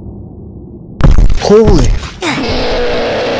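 A monster lets out a loud, sudden scream.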